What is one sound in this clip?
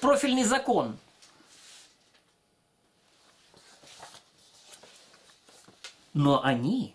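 Paper sheets rustle as they are handled.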